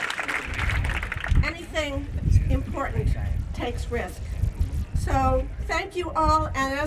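A woman speaks into a microphone over loudspeakers.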